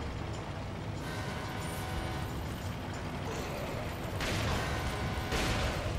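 A low engine rumbles steadily.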